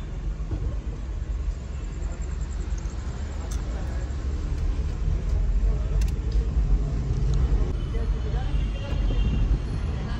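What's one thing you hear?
A car drives along, heard from inside the cabin.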